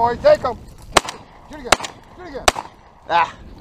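A shotgun fires several sharp shots.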